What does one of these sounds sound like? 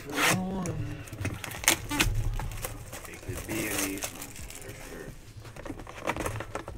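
A cardboard box scrapes and taps as hands turn it over.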